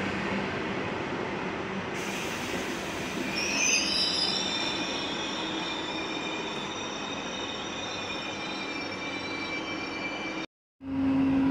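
A train rolls slowly into a station.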